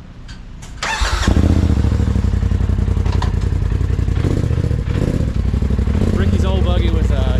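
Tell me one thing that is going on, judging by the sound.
A vehicle engine idles with a steady low rumble close by.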